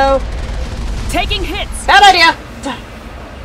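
A young woman speaks briefly close to a microphone.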